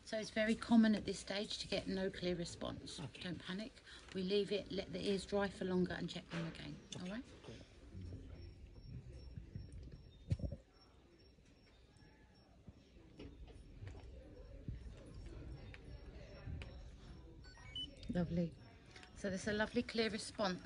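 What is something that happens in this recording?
A woman speaks softly and calmly nearby.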